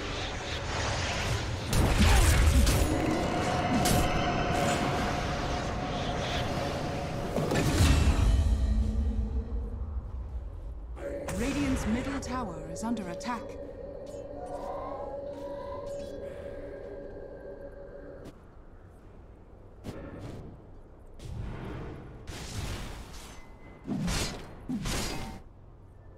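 Magic spells burst and whoosh in a computer game battle.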